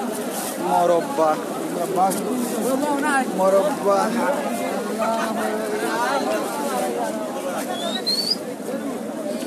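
A crowd of people talks and cheers loudly nearby.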